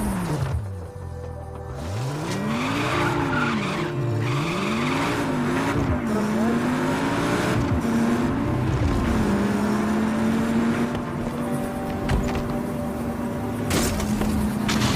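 A sports car engine revs hard, its pitch rising and falling with gear changes.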